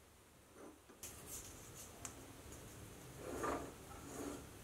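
A metal part clicks and scrapes against a lathe chuck's jaws.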